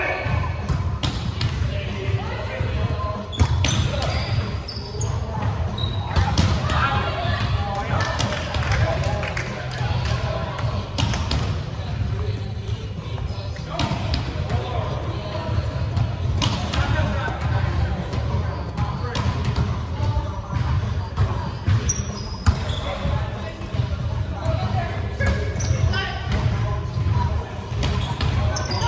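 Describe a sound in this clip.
A volleyball thumps off players' arms in a large echoing gym.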